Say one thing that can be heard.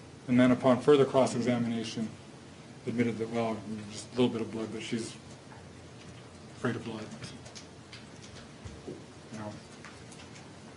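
A man speaks calmly into a microphone, heard through a loudspeaker in an echoing room.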